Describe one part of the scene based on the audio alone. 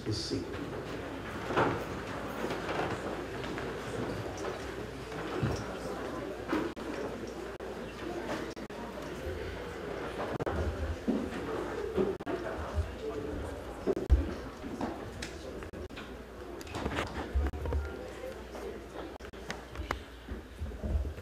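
A man reads out calmly in a large echoing hall.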